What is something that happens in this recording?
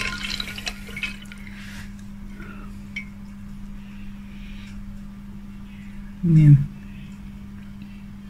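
A wooden stick stirs liquid and taps against a glass jar.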